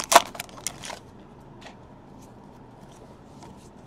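Hands shuffle through trading cards.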